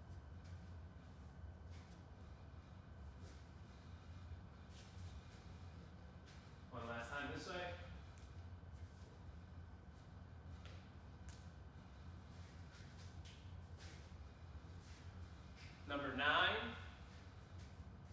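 Bare feet shuffle and step on a soft mat.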